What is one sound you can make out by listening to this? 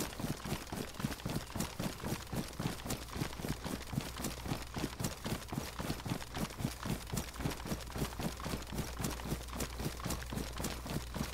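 Footsteps run quickly and steadily through rustling grass.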